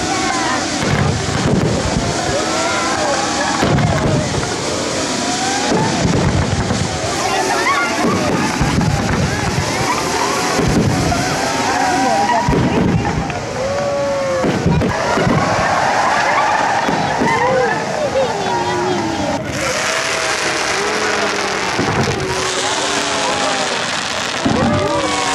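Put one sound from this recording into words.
Fireworks boom in deep thuds, again and again.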